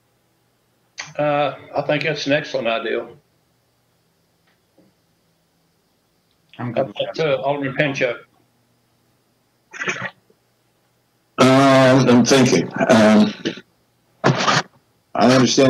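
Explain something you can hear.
A man speaks calmly over an online call, with pauses.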